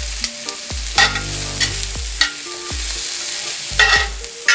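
Metal tongs clink and scrape against a pan.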